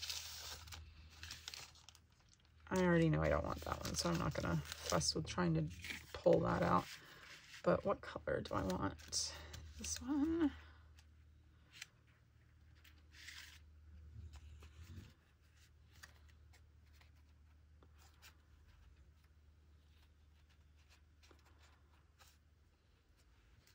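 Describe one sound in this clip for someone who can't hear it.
Paper cards rustle and slide as hands shuffle them.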